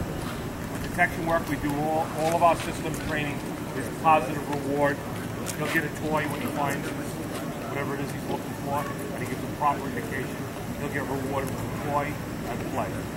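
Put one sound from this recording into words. A man calls out short commands outdoors.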